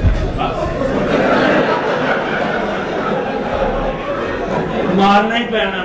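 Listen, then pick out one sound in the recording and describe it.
An audience laughs and cheers loudly.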